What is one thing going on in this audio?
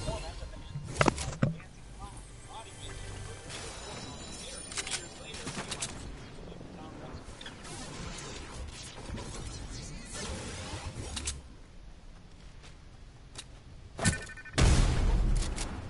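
Gunshots and blasts crack in a video game.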